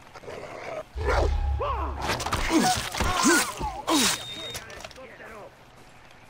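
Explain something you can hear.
An animal snarls and yelps up close.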